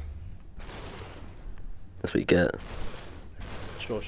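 A body shatters like breaking glass.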